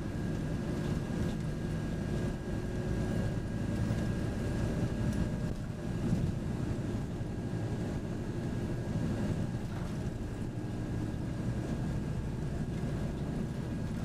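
A vehicle's engine rumbles steadily from inside as it drives along.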